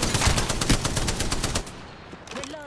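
A gun fires in a rapid burst.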